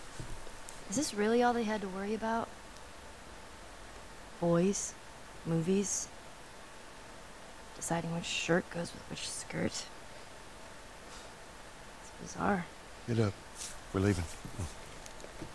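A man speaks calmly and quietly.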